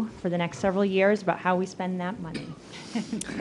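A young woman speaks calmly into a microphone in a large room.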